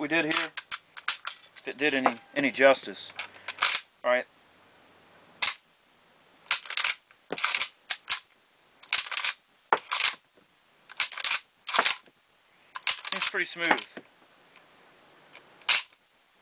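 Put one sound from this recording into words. A rifle's metal parts click and clack as they are worked by hand.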